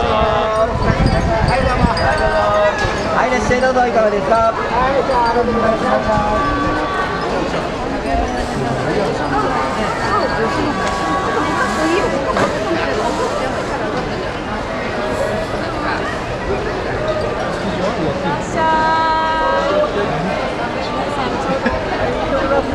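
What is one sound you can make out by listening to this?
A crowd of men and women chatters all around, close by.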